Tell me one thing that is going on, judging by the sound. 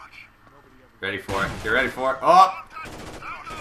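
Rifle gunfire rattles in quick bursts.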